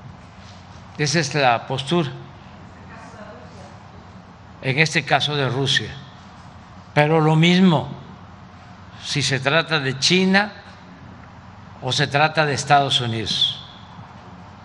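An elderly man speaks slowly and firmly into a microphone, in bursts with pauses.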